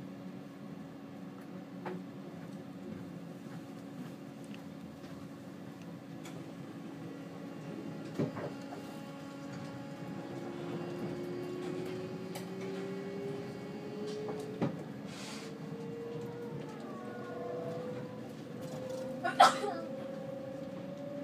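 A train hums steadily along the rails, heard from inside a carriage.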